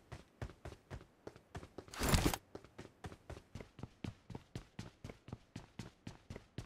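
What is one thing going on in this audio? Footsteps run quickly and evenly on a hard floor.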